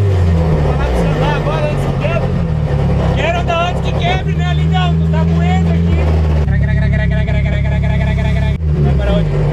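A man laughs and shouts excitedly close by.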